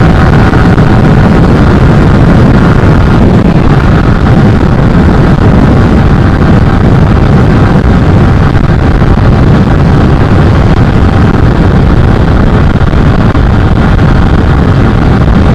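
Wind buffets and roars past a rider at high speed.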